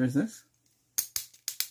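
A pen clicks sharply several times.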